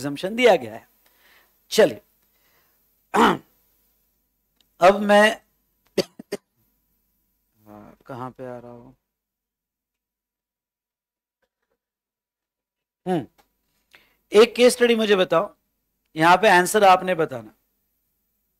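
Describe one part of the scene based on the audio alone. A man speaks calmly in short bursts through a close microphone.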